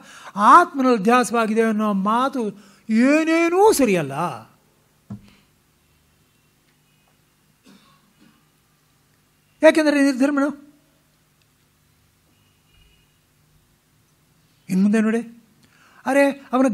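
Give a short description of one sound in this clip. An elderly man chants in a steady, sung voice.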